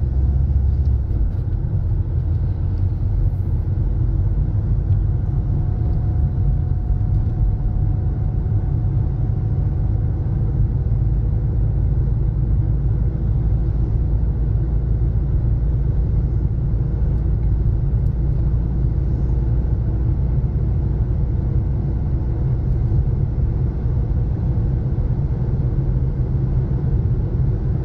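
Tyres roll on the road surface.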